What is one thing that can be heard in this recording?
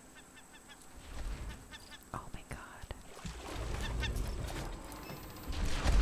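Water splashes as a swimmer surfaces and swims.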